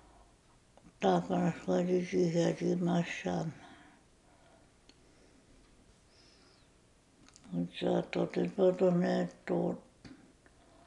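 An elderly woman speaks calmly and slowly, close by.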